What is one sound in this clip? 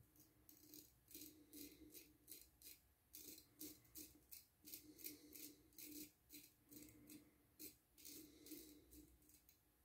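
A razor scrapes softly over stubble.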